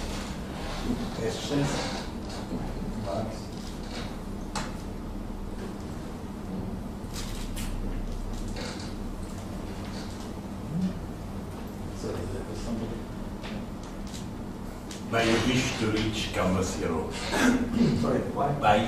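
A man lectures in a large room, heard through a microphone with some echo.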